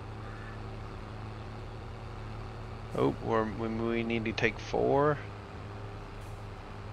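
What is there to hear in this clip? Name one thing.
A harvester engine hums steadily.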